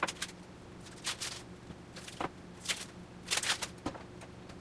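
Dry onion skin crackles as it is peeled.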